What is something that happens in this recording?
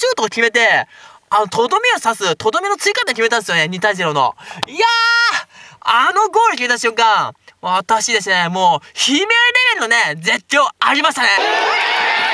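A young man speaks excitedly and shouts close to a microphone.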